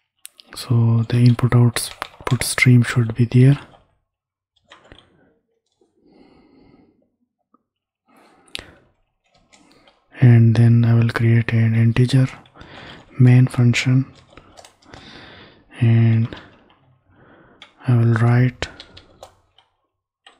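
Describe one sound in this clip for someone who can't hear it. A young man talks calmly and close to a microphone, in bursts with pauses.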